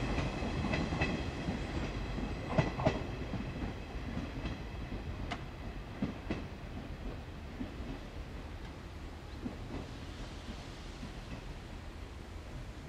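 A train rumbles away along the track, slowly fading into the distance.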